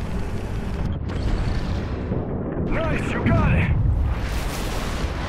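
A muffled explosion booms underwater.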